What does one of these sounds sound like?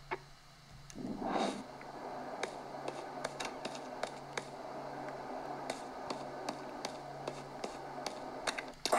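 Game music and effects play from a handheld game console's small speakers.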